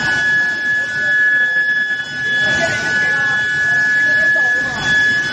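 Induction heating machines give off a steady, high-pitched whine.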